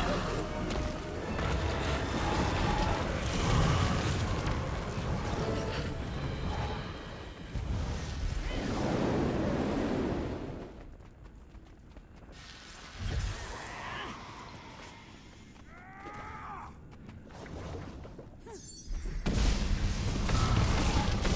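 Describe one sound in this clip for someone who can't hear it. Magic blasts crackle and boom during a fight.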